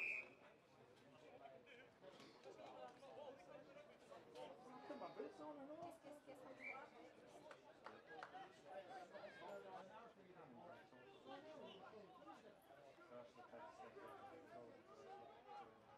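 Men shout and call out at a distance outdoors.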